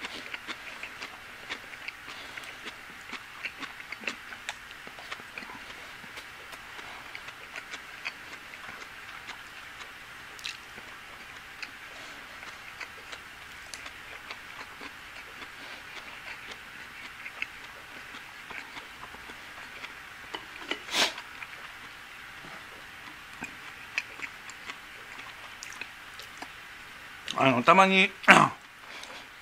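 Chopsticks tap and scrape against a ceramic bowl.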